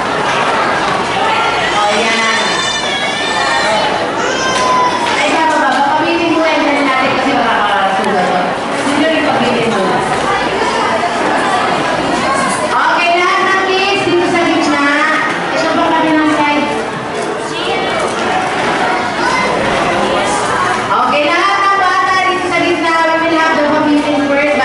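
A crowd of children and adults chatters in the background.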